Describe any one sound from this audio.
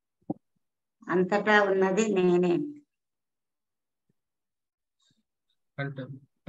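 A woman sings in a sustained tone, heard through an online call.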